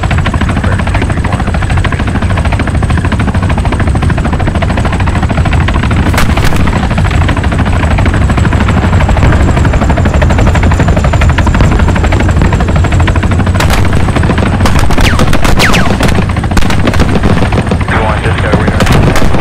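A helicopter's rotor thumps loudly and steadily close by.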